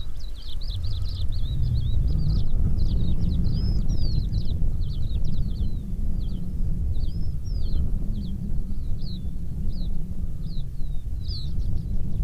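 Cheetah cubs chirp in high, bird-like calls.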